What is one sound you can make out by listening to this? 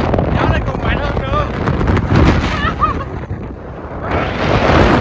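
Wind blows hard against a microphone.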